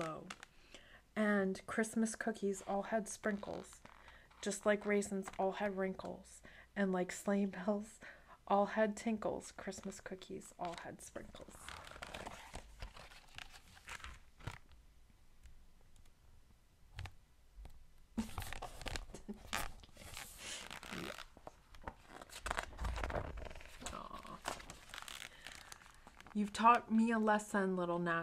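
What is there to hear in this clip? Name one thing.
A young woman reads aloud close to a microphone in a lively, sing-song voice.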